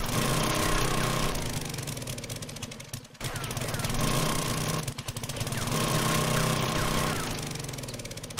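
A small motor engine drones and revs, dipping briefly now and then.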